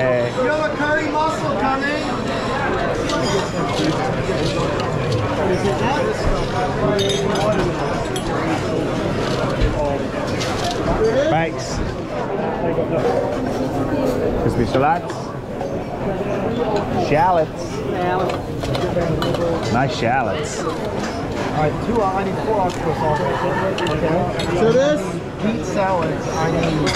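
A crowd of diners chatters steadily in the background.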